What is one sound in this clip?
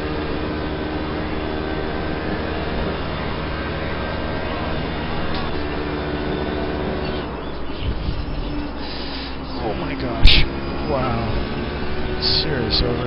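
A racing car engine roars steadily, its pitch rising and dropping with gear changes.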